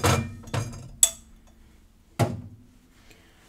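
Glassware clinks and taps.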